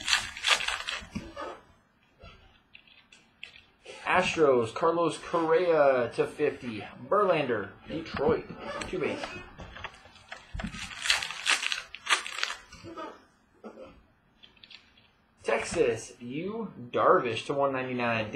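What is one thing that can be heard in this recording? Trading cards rustle and slide between hands.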